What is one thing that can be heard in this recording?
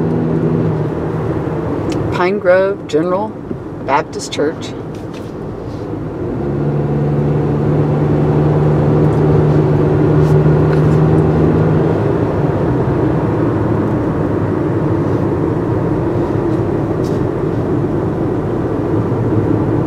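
Tyres roll over a paved road, heard from inside the car.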